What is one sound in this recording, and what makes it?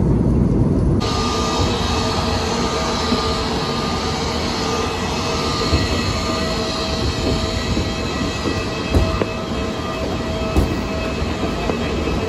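A bus engine idles outdoors with a steady hum.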